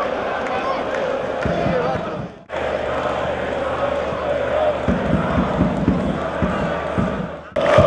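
A crowd murmurs and cheers in an open stadium.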